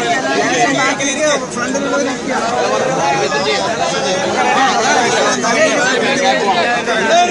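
A crowd of men talks and calls out all around, close by, outdoors.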